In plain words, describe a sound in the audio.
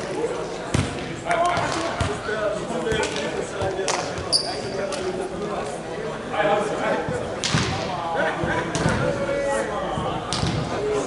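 Young men call out and talk in a large echoing hall.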